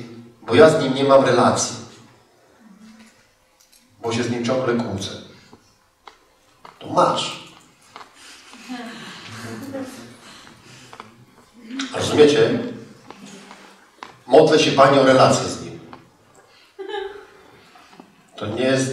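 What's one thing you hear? A man speaks into a microphone with pauses, in a large echoing hall.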